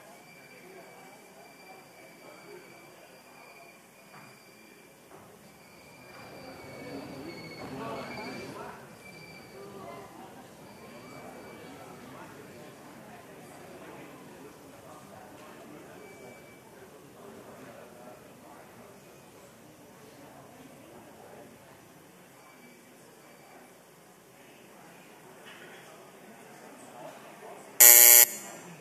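Several men chat quietly nearby in a large hall.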